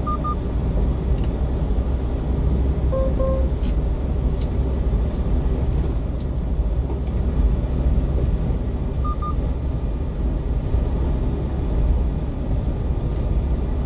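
A car engine hums steadily with a low rumble while driving.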